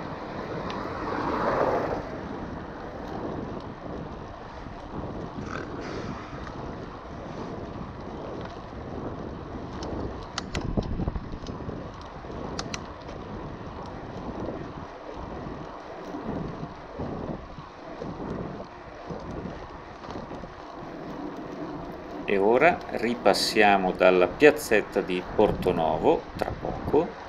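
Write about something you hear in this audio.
Bicycle tyres roll and crunch over a gravel road.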